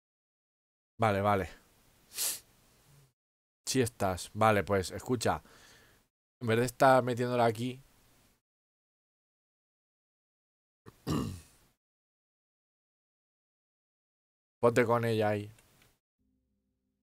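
A man talks with animation close to a microphone, in short bursts.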